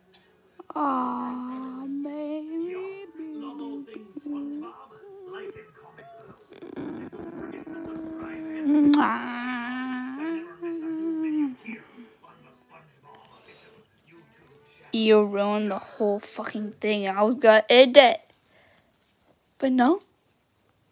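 A dog howls and whines close by.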